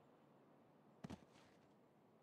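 A body thuds onto the ground.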